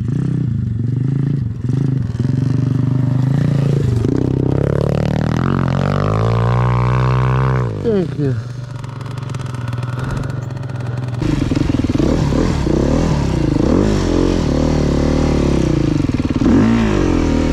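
A dirt bike engine revs up and down.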